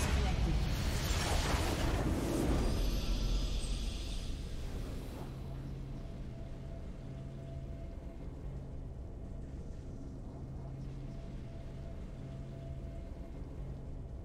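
A game's victory fanfare swells and then settles into a soft hum.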